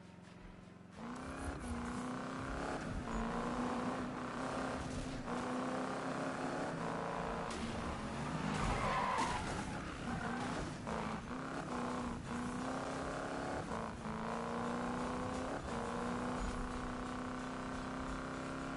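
A car engine roars and revs up through its gears at speed.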